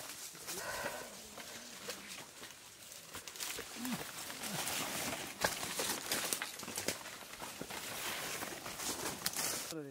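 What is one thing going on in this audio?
Footsteps rustle through dry leaves on the ground.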